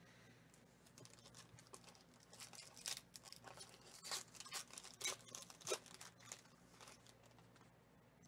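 A foil wrapper crinkles and tears as hands pull it open.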